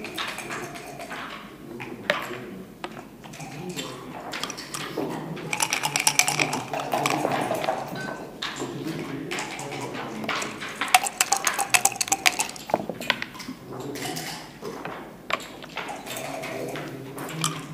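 Checkers click on a wooden board.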